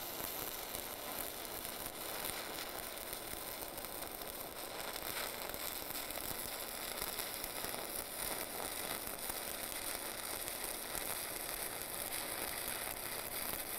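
A stick welding arc crackles and sizzles on a steel pipe.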